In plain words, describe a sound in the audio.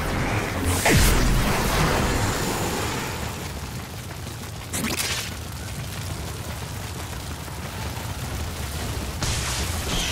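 Blades slash and whoosh through the air.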